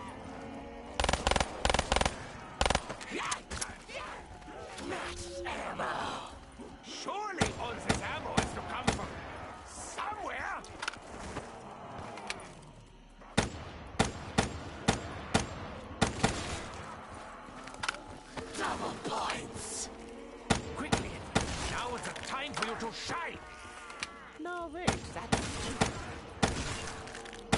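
Guns fire in loud bursts of sharp shots.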